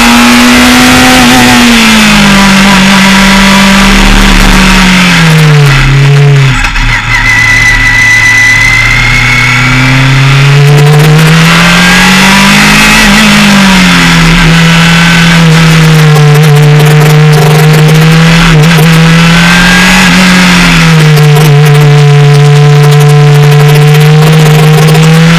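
A racing car engine roars loudly up close, its pitch dropping on braking and climbing through the gears.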